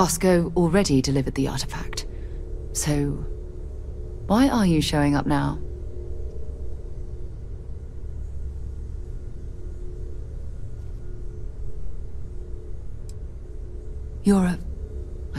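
A woman speaks calmly and close by, with some pauses.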